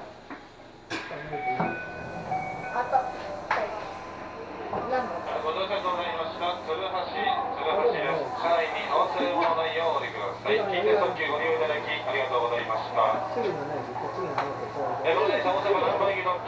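Many people chatter nearby in an echoing hall.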